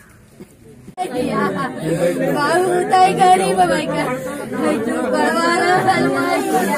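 Women wail and cry loudly in grief.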